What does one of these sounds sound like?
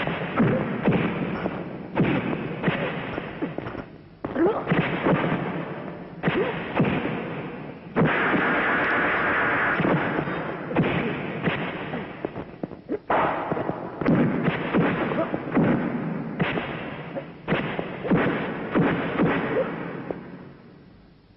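Punches land with sharp, heavy thuds.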